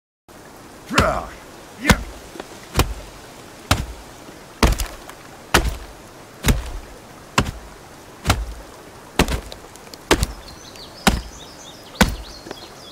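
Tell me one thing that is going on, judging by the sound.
An axe chops into a tree trunk with steady, repeated thuds.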